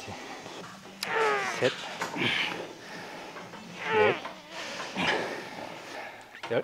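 A man strains and groans with effort, close to a microphone.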